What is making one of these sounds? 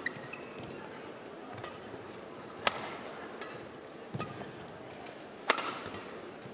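Rackets strike a shuttlecock with sharp pops.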